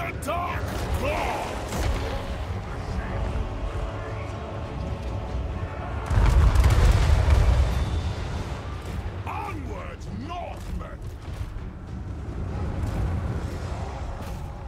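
Game battle noise rumbles and clashes in the background.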